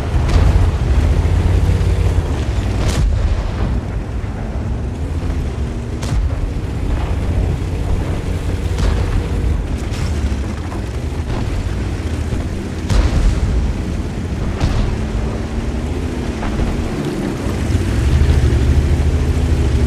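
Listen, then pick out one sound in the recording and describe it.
A tank engine rumbles deeply and steadily.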